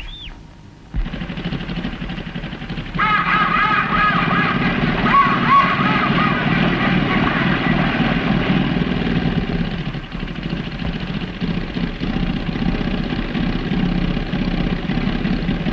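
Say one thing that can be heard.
A car engine rumbles loudly as the car drives along.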